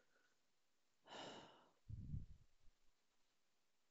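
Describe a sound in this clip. A young woman speaks briefly and quietly close to a microphone.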